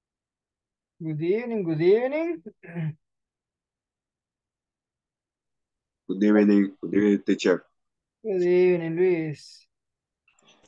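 A man speaks clearly over an online call, in short phrases.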